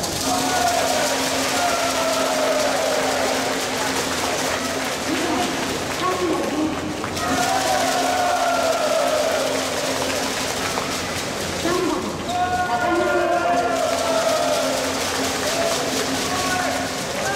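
A crowd cheers and chants rhythmically in a large echoing hall.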